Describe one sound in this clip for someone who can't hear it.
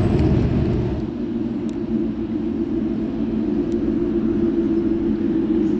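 A racing car engine idles with a low, steady rumble.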